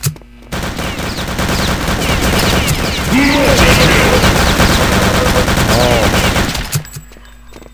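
A submachine gun fires in rapid, loud bursts.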